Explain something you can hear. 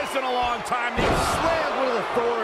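A body slams down onto a wrestling ring mat with a heavy thud.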